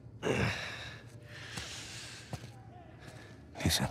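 Footsteps shuffle across the floor.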